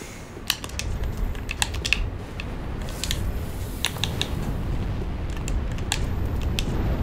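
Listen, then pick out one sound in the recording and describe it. Menu clicks tick in quick, uneven bursts.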